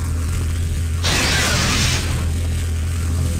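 A glowing floor panel gives off a bright, rushing magical hiss.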